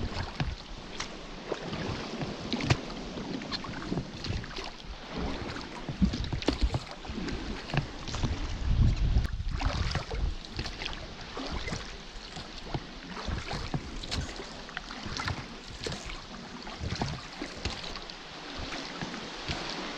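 Water laps and splashes against a boat's hull and nearby rocks.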